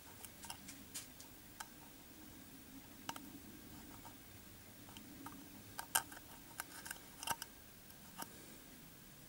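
A thin metal wire scrapes and clicks against a metal burner.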